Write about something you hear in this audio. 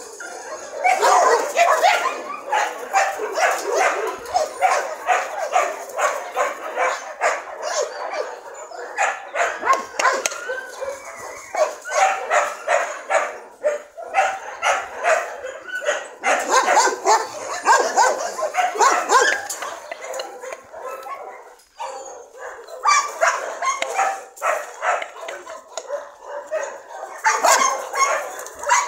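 Several dogs bark and yelp.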